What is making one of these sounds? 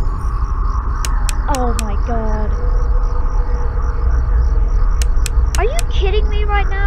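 A flashlight switch clicks on and off in quick bursts.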